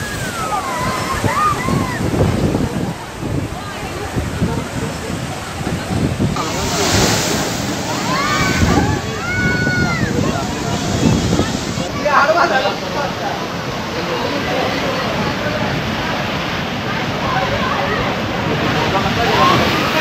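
Heavy waves crash and surge against a sea wall.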